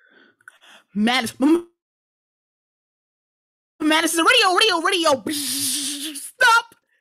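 A woman sings loudly and expressively, close up.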